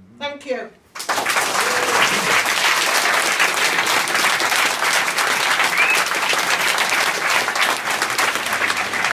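A crowd applauds loudly.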